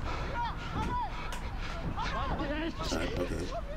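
A football is kicked hard.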